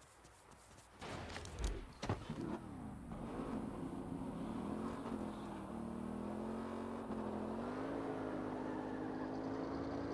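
A motorcycle engine starts and hums steadily, rising in pitch as it speeds up.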